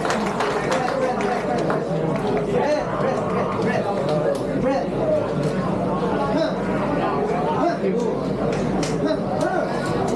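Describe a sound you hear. A crowd of men chatter and call out loudly in an echoing hall.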